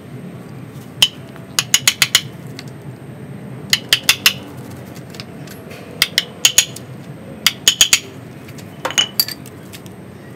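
A small metal tool taps and scrapes in dry soil.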